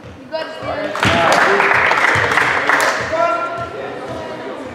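A small crowd cheers and claps.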